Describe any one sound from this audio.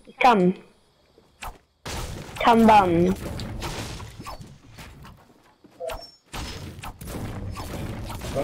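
A pickaxe strikes wood and metal with sharp thuds.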